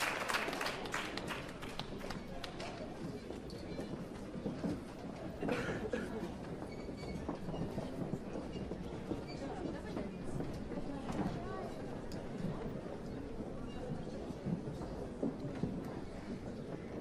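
A crowd murmurs and chatters as people get up to leave.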